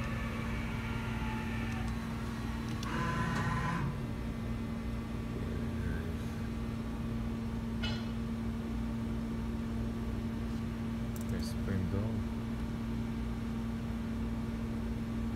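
A CNC vertical machining center hums.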